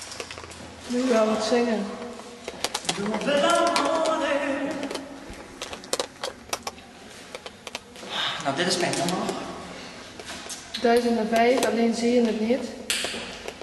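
A woman talks loudly and with animation close by.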